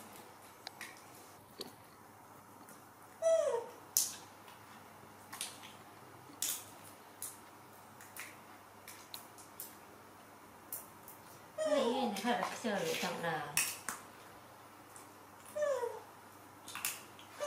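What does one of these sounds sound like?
A small monkey picks food from a plastic bowl with light clicks and taps.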